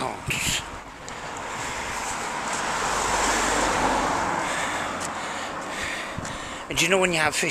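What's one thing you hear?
A car drives past, rising and fading.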